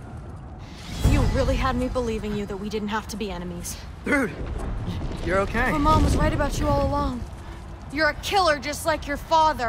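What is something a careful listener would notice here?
A young woman speaks angrily and close by.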